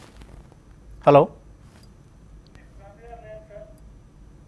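A man speaks briefly and calmly into a microphone.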